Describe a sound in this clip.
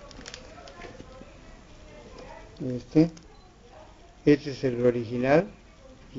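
Plastic sleeves rustle and crinkle as album pages are turned.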